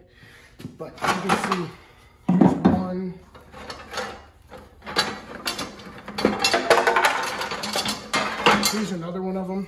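Objects clunk and scrape inside a plastic bucket.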